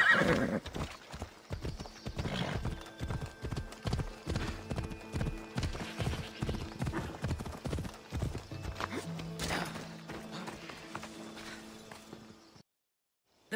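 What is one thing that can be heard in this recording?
Horse hooves clop steadily on a dirt path.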